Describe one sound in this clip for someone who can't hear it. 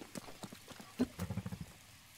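A horse's hooves clop on the ground.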